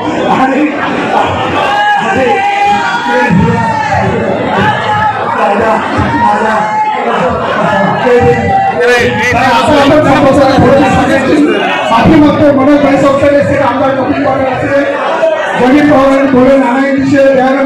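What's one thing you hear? A crowd of men murmurs and calls out in the background.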